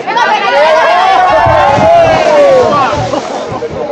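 A body splashes into the water.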